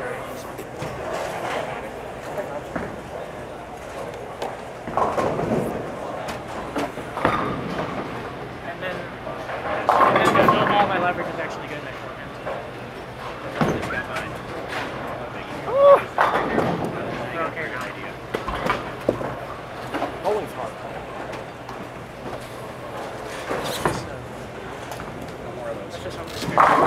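Voices murmur in the background of a large echoing hall.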